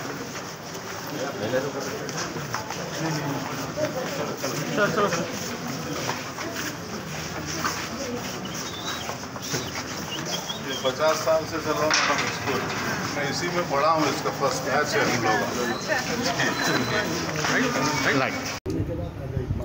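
A crowd of men talks and murmurs nearby.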